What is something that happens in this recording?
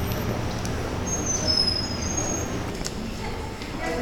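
An elderly man talks agitatedly close by.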